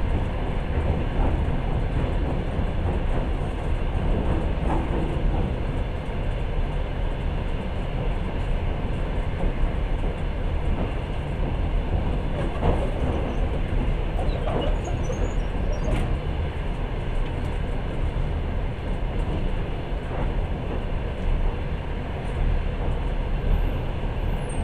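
A vehicle rumbles steadily as it travels along.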